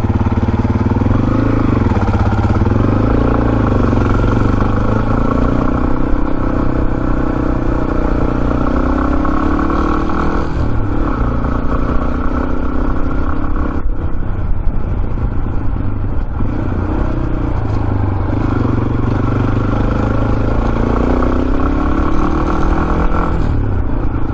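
A motorcycle engine hums steadily and rises and falls in pitch as the rider speeds up and slows down.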